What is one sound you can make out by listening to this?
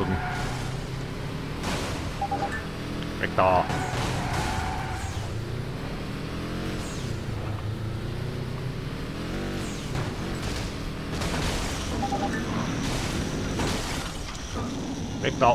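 A car engine revs and roars steadily.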